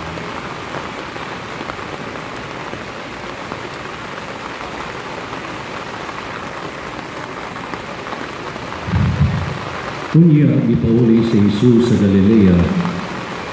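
Rain patters steadily on many umbrellas outdoors.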